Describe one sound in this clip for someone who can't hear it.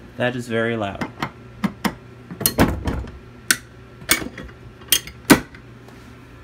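A screwdriver clicks and scrapes against a metal fitting.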